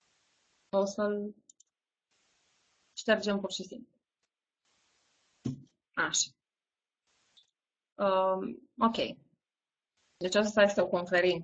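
A woman speaks calmly in short phrases, heard through an online call.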